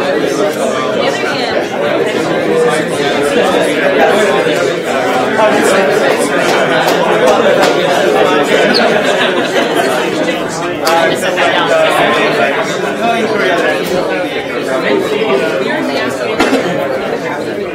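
A man lectures calmly into a microphone in a large room.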